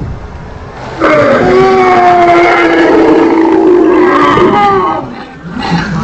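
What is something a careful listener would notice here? A large creature bellows loudly through a loudspeaker.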